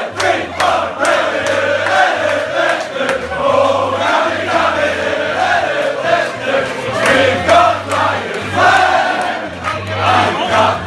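A packed crowd of football fans chants and sings loudly indoors.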